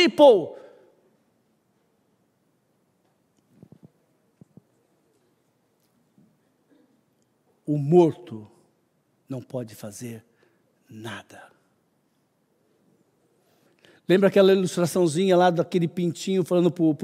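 A man preaches into a microphone with pauses, his voice echoing slightly in a large room.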